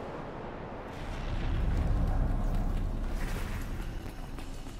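A deep rumbling roar swells and then fades.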